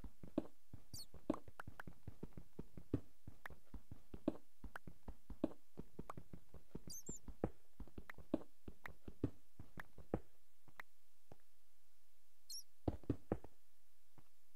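A pickaxe chips rapidly at stone with sharp, repeated taps.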